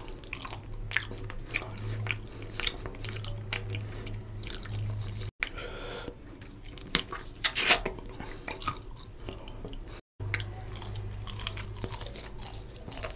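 A man chews food noisily close to a microphone.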